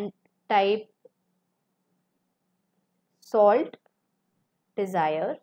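A young woman speaks calmly in short phrases close to a microphone.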